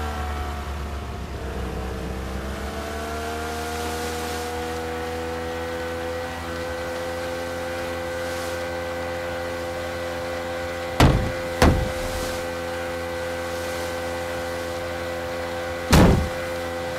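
A boat motor hums steadily, rising in pitch as it speeds up.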